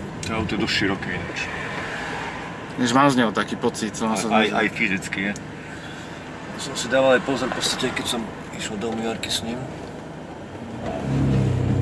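A second man answers calmly inside a car.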